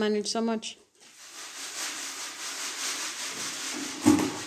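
Sand rustles and patters as it is shaken through a sieve.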